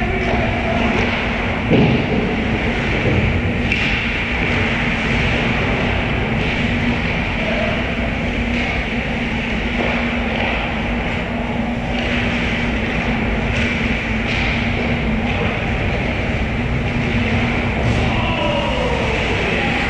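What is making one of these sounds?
Skate blades scrape across ice in a large echoing rink.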